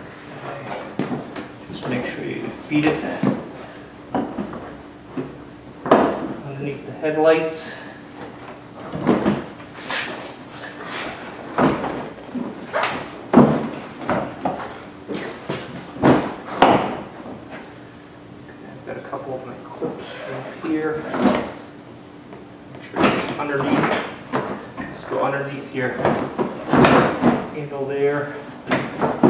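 Plastic parts click and knock as hands work on a car's front bumper.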